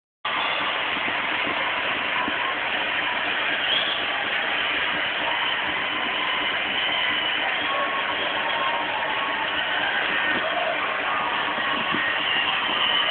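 A small dog snorts and breathes heavily close by.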